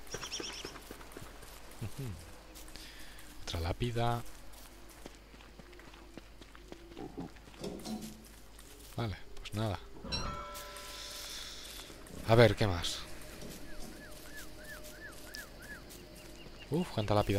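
Light footsteps patter on soft ground.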